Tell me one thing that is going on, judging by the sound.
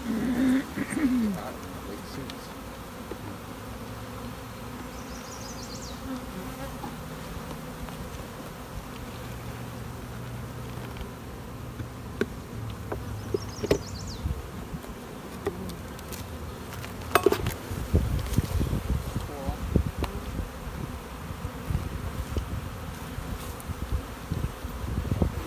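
Bees buzz around a hive.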